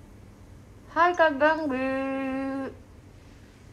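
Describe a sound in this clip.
A young woman hums a long drawn-out note.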